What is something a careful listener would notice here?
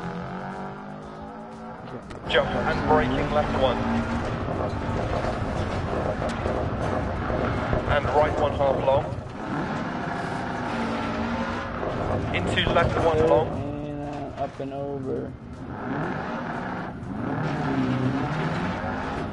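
A rally car engine roars and revs at high speed.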